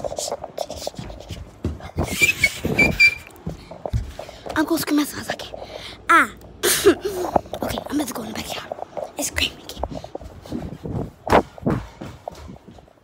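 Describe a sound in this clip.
A young child talks close to the microphone.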